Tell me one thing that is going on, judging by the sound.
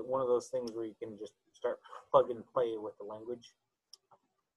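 An elderly man speaks calmly through an online call.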